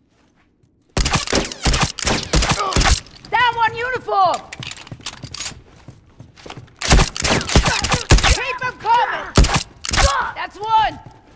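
Gunshots fire rapidly, in bursts.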